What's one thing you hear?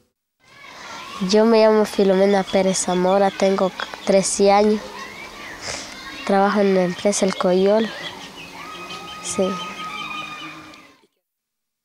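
A young girl speaks calmly and close to a microphone.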